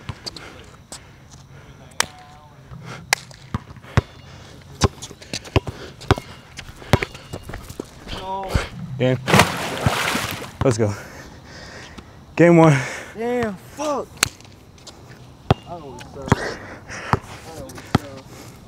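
A basketball bounces sharply on an outdoor court.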